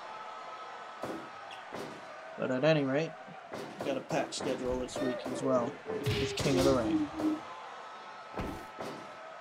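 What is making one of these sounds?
Heavy thuds of body slams and blows land in a wrestling game.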